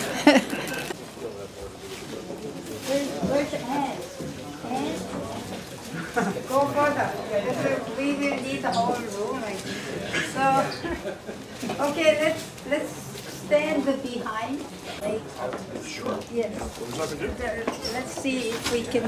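A crowd of people chatters indoors throughout.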